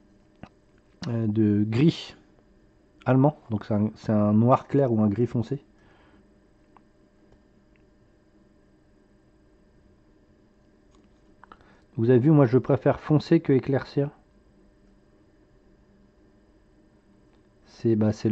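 A man talks calmly and close to a microphone, with pauses.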